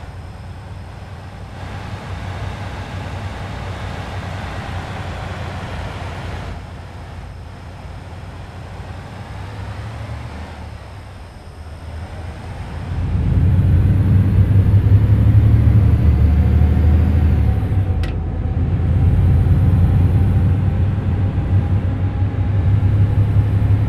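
A truck engine rumbles steadily and grows louder and deeper partway through.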